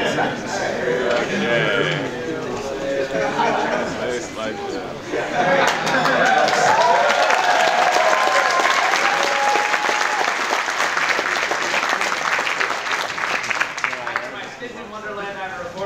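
A large crowd chatters and calls out in an echoing hall.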